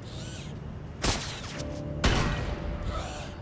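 Loud energy blasts burst out twice.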